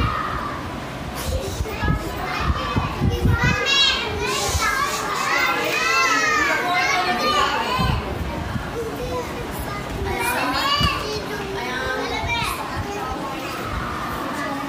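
A crowd of young children chatter and call out together indoors.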